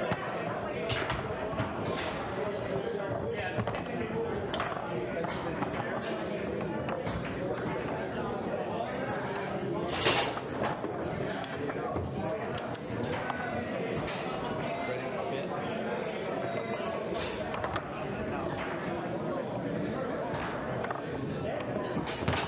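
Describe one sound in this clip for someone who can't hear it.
A foosball ball cracks against plastic figures and the table walls.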